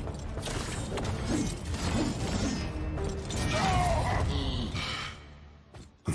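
Weapons clash and thud in a loud, busy fight.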